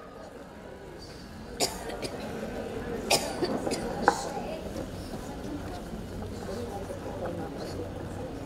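A large crowd of women murmurs softly in a big hall.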